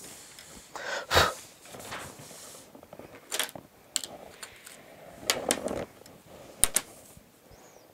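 A ruler clatters against a tabletop.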